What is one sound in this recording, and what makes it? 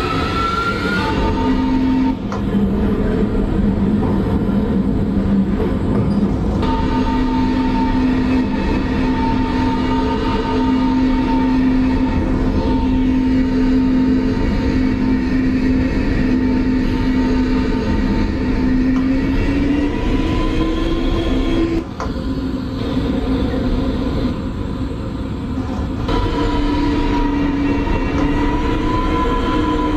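A train's electric motors whine steadily as it rolls along the track.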